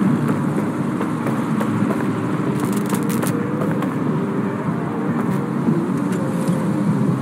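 Footsteps tap quickly on a pavement.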